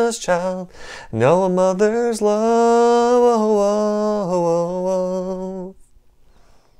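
A young man sings a long held note close to a microphone.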